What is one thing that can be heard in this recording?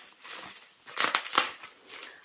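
A gloved hand rubs against a polystyrene box, squeaking.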